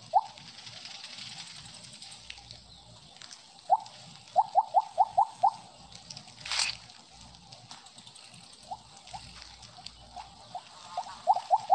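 Short rising blips chime now and then as a game's snake swallows glowing orbs.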